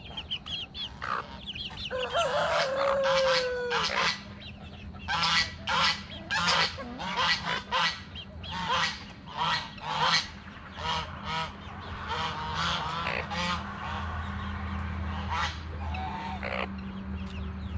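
Chickens cluck and squawk close by.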